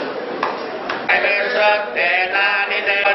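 A group of men chant together loudly and close by.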